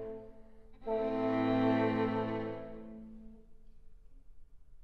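A string ensemble plays a loud, sustained chord that rings out and fades in an echoing hall.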